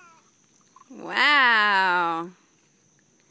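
A toddler squeals loudly with delight.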